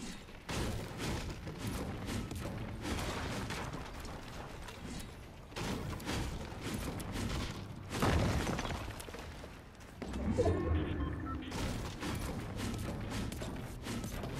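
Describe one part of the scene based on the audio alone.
A pickaxe strikes walls again and again with sharp thuds.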